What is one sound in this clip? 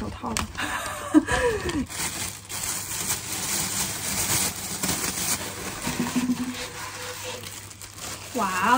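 A plastic sheet crinkles and rustles as it is unfolded.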